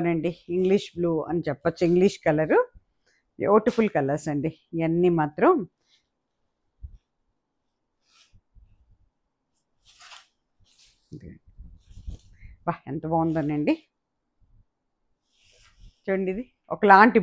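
Fabric rustles as cloth is unfolded and shaken.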